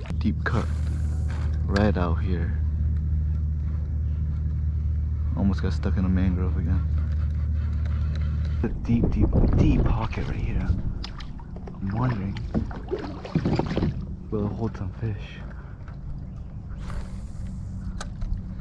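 Water laps softly against a kayak's hull.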